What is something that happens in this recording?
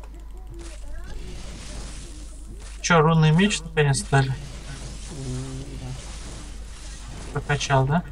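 A magic spell crackles and shimmers.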